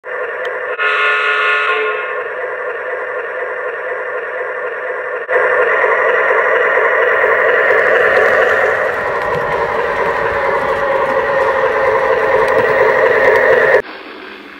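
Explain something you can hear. A model train's motor hums steadily as it runs.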